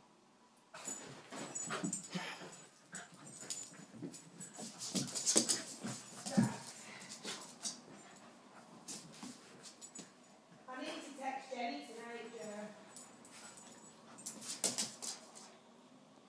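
Two small dogs growl and snarl playfully.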